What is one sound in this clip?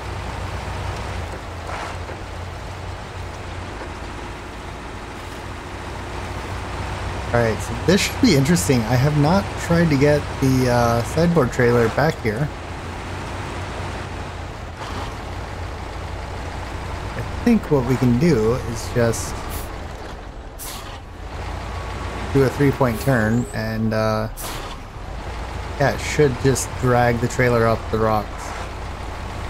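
A heavy truck engine rumbles low and steady as it crawls along.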